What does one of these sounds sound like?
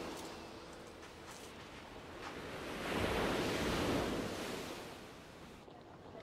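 Waves wash onto the shore, swelling and then fading.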